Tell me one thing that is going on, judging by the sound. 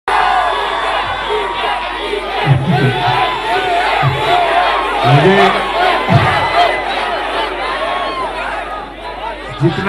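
A large crowd of young people cheers and screams with excitement close by.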